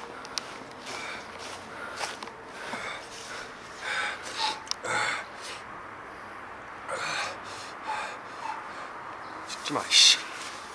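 A young man speaks close by with animation.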